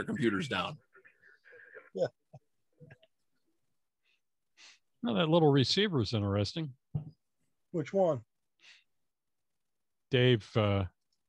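A man speaks over an online call, in short bursts with pauses.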